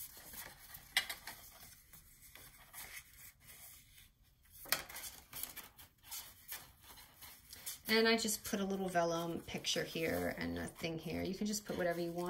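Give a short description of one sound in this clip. Stiff paper cards rustle and flap as they are folded open and shut.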